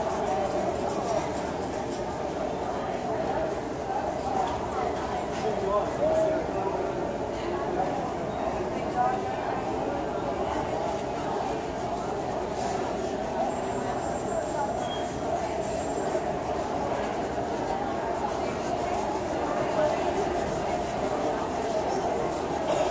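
A crowd murmurs in a large hall.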